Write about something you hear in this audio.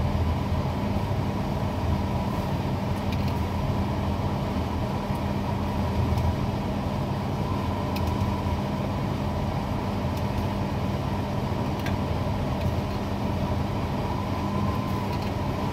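A crane motor hums steadily.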